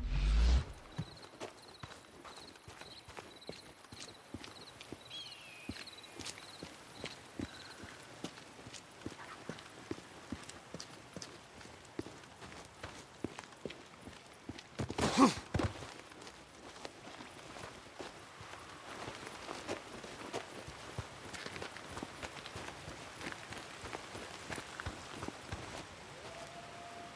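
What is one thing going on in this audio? Footsteps crunch on dirt and gravel as a man runs.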